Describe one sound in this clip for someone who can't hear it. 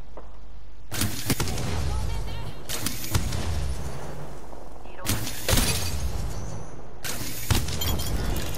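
A rifle fires loud single shots with a booming echo.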